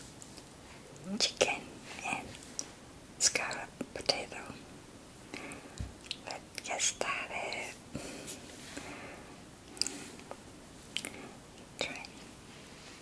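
A woman speaks softly and closely into a microphone.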